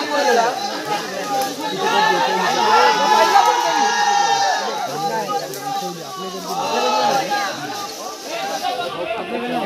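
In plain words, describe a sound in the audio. A crowd of men shout and chant loudly outdoors.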